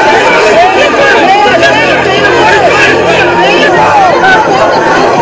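A crowd of men and women shout and yell loudly in a chaotic scuffle.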